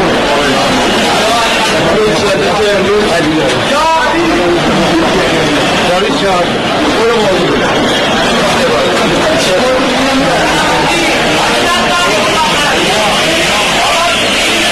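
A crowd of men talk and shout excitedly close by.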